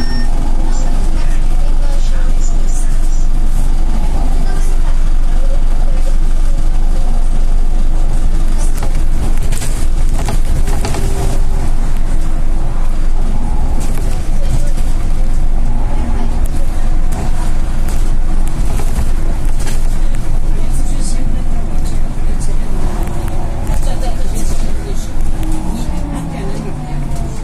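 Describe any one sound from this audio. A bus engine hums steadily from inside as the bus drives along.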